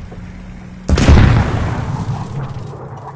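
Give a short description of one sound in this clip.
A bomb explodes with a loud boom.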